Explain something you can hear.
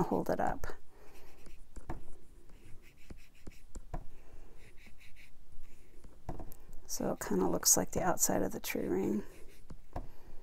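A foam dauber dabs softly against card, with faint taps.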